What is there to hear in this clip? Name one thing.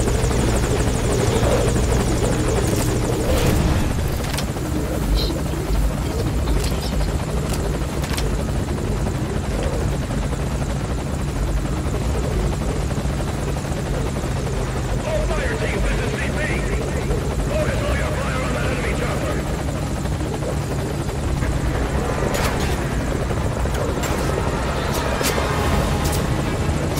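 A helicopter engine and rotor drone steadily and loudly.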